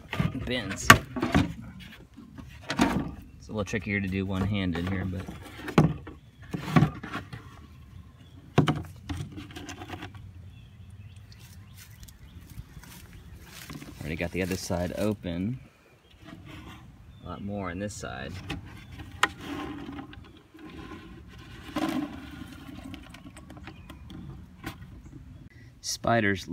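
A plastic bin bumps and scrapes as it is handled.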